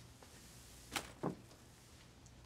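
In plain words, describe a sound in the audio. A wicker basket is set down on a floor with a soft rustle.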